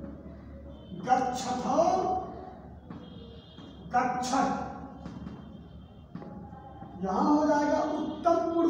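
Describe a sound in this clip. A man speaks loudly and clearly in a room with some echo.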